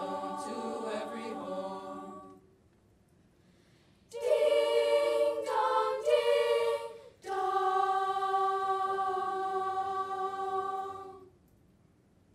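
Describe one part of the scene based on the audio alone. A choir of young girls sings together close by.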